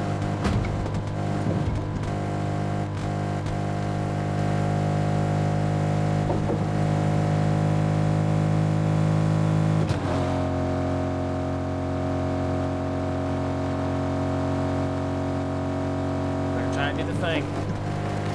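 A vehicle engine drones steadily, shifting pitch once as it speeds along.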